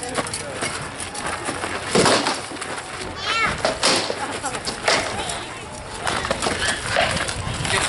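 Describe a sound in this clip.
Weapons clash against shields in sharp knocks and thuds.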